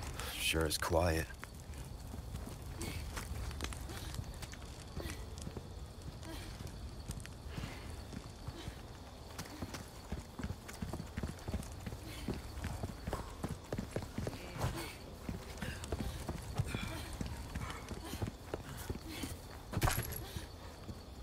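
Footsteps crunch on wet cobblestones.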